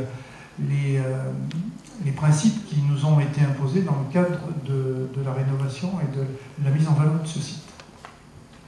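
A man speaks into a microphone over loudspeakers, in an echoing hall.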